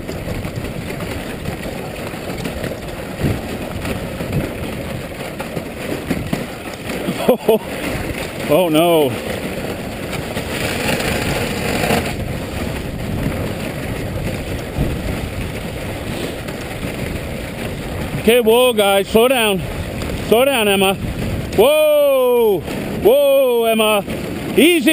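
Sled runners hiss and scrape steadily over packed snow.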